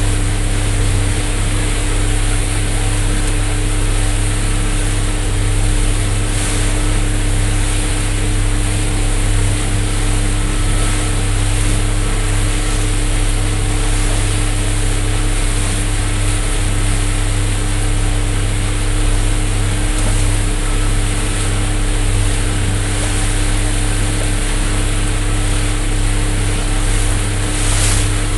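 Small waves lap and splash gently close by.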